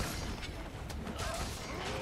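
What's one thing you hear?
A fiery blast bursts with a crackling whoosh.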